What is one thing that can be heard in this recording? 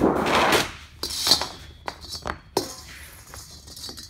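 Metal clanks and knocks against metal.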